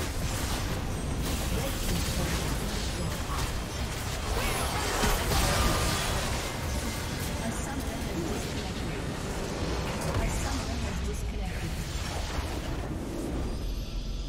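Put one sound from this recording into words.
Game spell effects crackle and boom in a chaotic battle.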